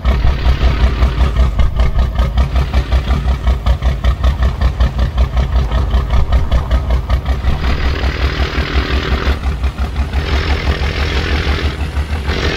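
A heavy truck engine rumbles with a deep, pulsing throb.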